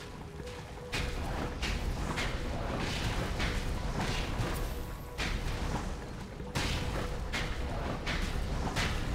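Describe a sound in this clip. Fiery blasts burst with sharp whooshing bangs, again and again.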